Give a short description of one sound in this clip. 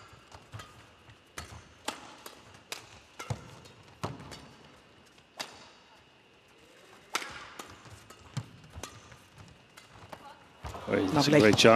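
Rackets smack a shuttlecock back and forth in a quick rally.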